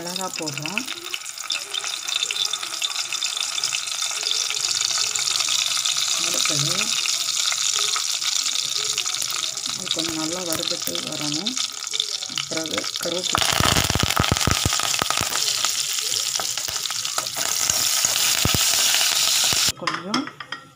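Hot oil sizzles steadily in a pan.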